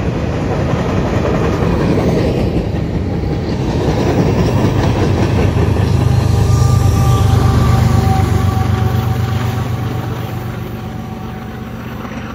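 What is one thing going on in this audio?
Diesel locomotives drone loudly as they pass.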